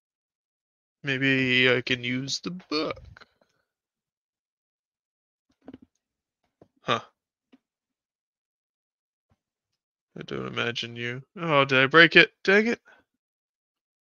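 A young man talks with animation, close by, in short bursts with pauses.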